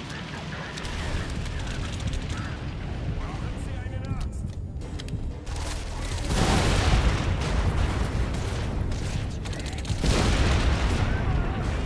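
A flamethrower roars with bursts of fire.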